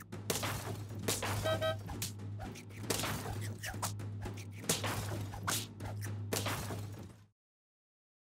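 Cartoon battle sound effects clash and thump loudly.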